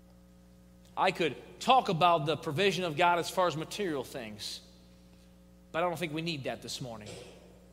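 A man speaks with emphasis through a headset microphone.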